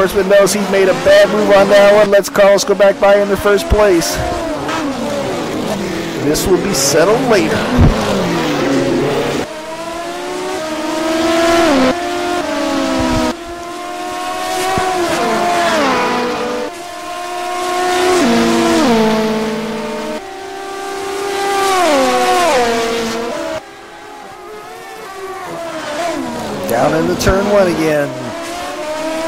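Racing car engines roar loudly, their pitch rising and dropping with each gear change.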